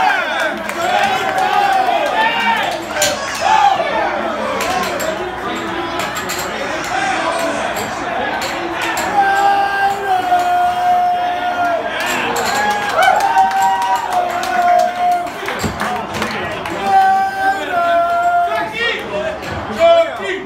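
A crowd of men chants and sings loudly nearby in an echoing room.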